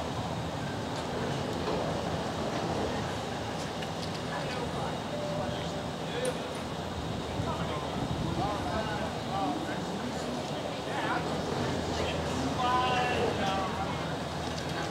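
Cable car cabins roll steadily along an overhead cable, outdoors.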